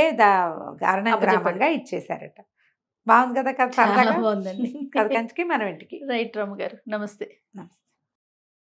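A younger woman speaks with animation into a microphone.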